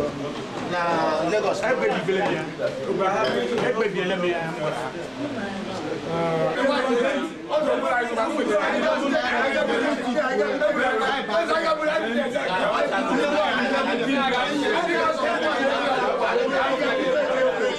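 An elderly man speaks loudly with animation.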